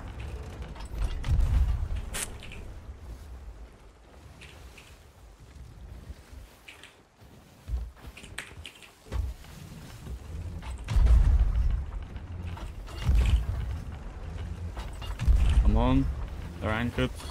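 Ocean waves surge and splash against a wooden ship.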